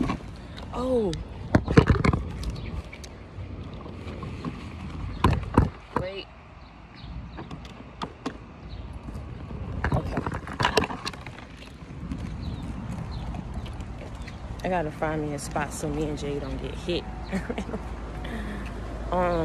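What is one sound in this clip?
A young woman talks close to a phone's microphone.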